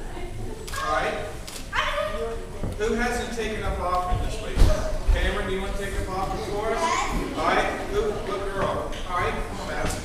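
Children call out and chatter in an audience.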